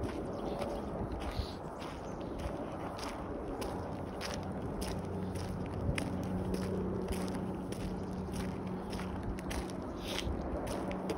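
Footsteps scrape and crunch on a gritty path.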